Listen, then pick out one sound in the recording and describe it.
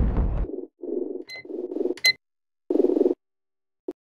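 Short electronic clicks sound as menu buttons are pressed.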